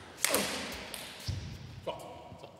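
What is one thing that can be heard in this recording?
A man shouts in triumph.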